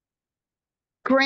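A woman speaks through a microphone in an echoing hall.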